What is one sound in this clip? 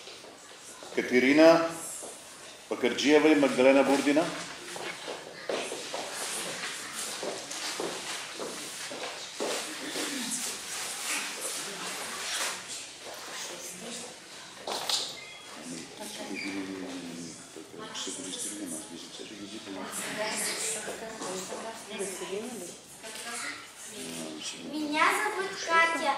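A crowd of children and adults chatters in a large echoing hall.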